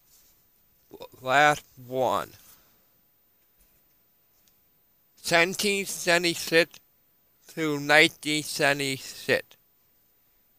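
A young man talks close to a headset microphone, in short bursts.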